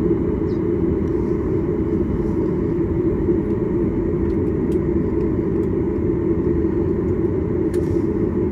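A jet airliner's engines hum steadily from inside the cabin as the plane taxis.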